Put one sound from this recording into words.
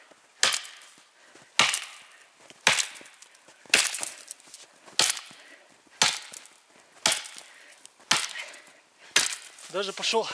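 An axe chops into a tree trunk with sharp, regular thuds.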